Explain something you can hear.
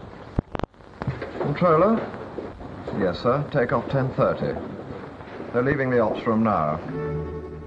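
A man talks into a telephone with animation.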